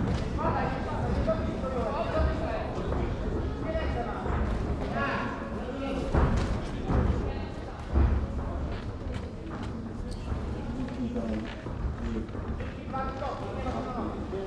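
Boxing gloves thud against a body in a large echoing hall.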